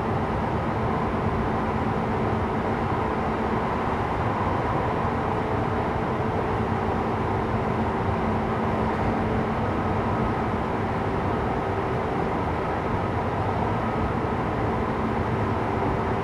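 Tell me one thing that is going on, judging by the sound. A stopped train's motor hums steadily.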